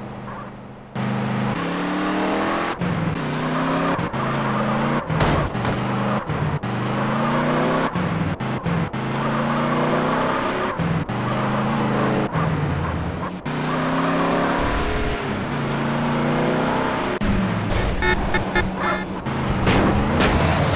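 A car engine revs hard and shifts through gears again and again.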